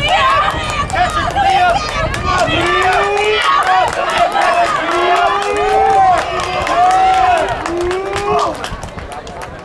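Spectators shout and cheer nearby, outdoors.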